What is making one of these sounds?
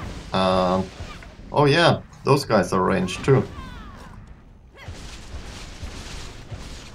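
Magic spells burst and crackle in quick succession.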